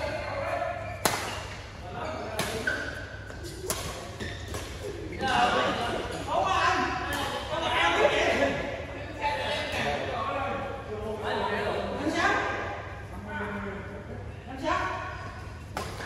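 Shuttlecocks are struck with sharp pops of badminton rackets.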